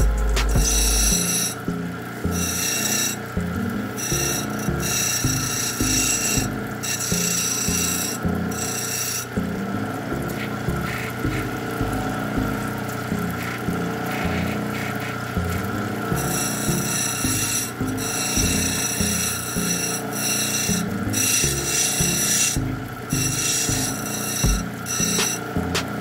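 A stone grinds against a spinning wheel with a high, scraping whine in short bursts.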